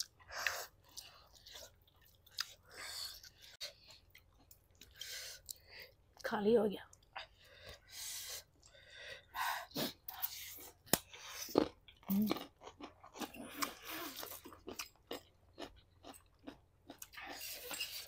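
People chew and slurp noodles close to a microphone.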